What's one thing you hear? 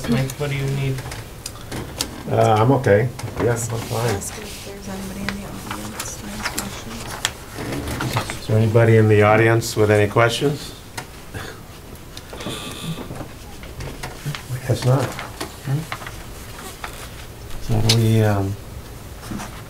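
Men talk calmly.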